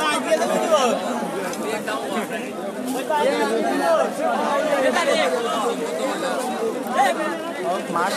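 A crowd of men and women talk and shout loudly all around.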